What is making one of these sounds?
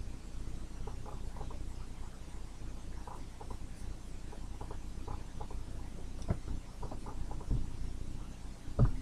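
A young woman speaks softly and quietly close by.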